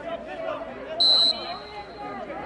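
A referee's whistle blows a short, sharp blast.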